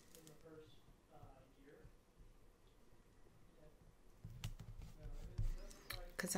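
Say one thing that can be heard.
A sticker peels off its backing.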